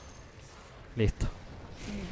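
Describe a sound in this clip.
A young man speaks briefly and with animation into a microphone.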